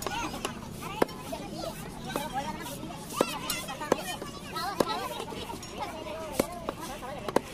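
A heavy knife chops down onto a wooden block with sharp thuds.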